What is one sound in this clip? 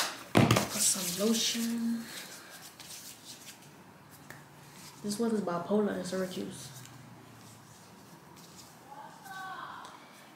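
Hands rub lotion together.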